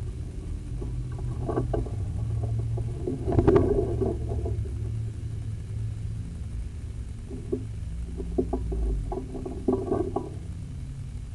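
Close rustling and bumping of clothing as someone moves about.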